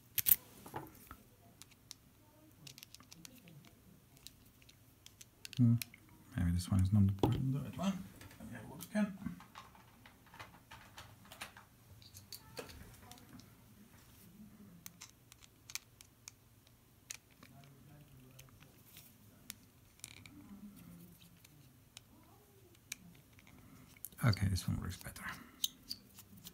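Small metal tools click and scrape against a lock cylinder.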